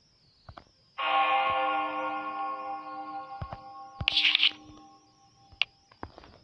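A scroll unrolls with a soft chime.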